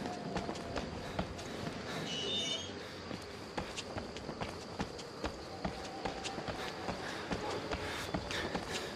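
Footsteps tread steadily on a hard path.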